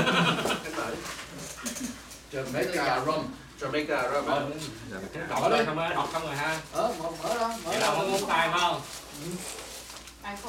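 Several middle-aged men chat calmly at a table nearby.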